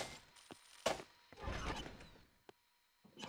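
A metal door slides open with a whoosh.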